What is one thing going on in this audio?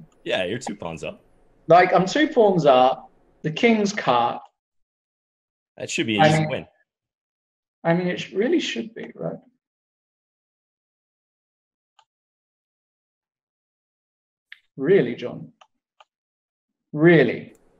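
A man talks calmly through a microphone on an online call.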